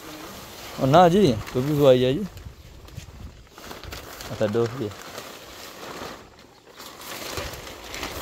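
A plastic sheet rustles.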